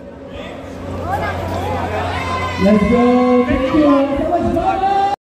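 A man sings loudly through a microphone in a large echoing hall.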